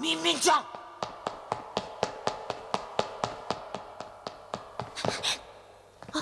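Footsteps run quickly across a hard metal floor.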